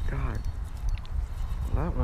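A fishing reel clicks as its handle is cranked.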